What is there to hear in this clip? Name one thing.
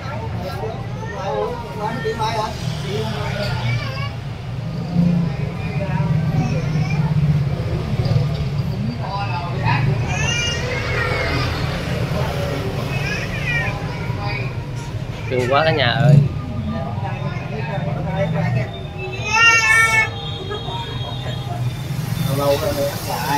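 An elderly man talks softly to a baby.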